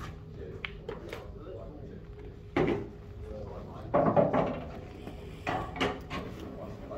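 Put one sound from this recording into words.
Billiard balls click together and roll across the table.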